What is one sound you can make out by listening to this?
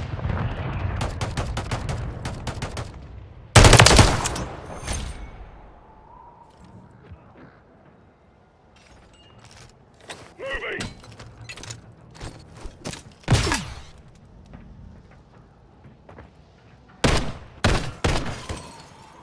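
A rifle fires rapid shots at close range.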